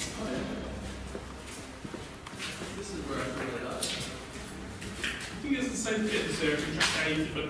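A man talks nearby in a low voice.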